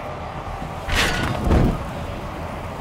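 A fire bursts into flame with a loud whoosh.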